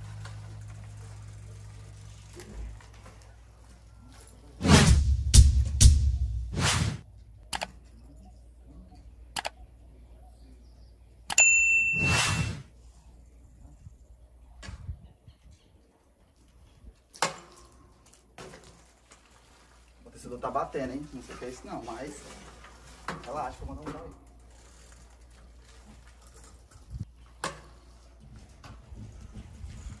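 Bicycle tyres roll over concrete and gravel.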